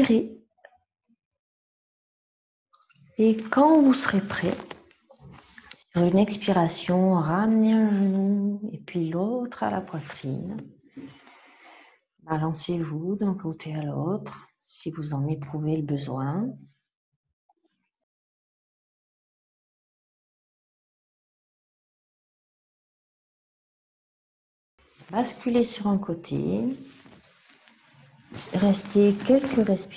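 A woman speaks calmly and clearly into a close microphone, giving instructions with pauses.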